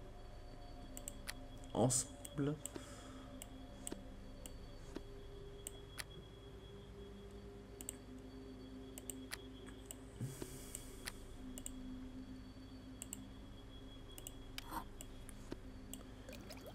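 Short soft clicks sound now and then as items are picked up and put down.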